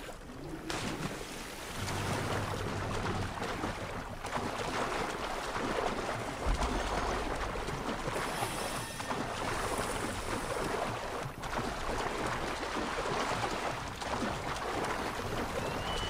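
Water splashes as a swimmer strokes steadily through a lake.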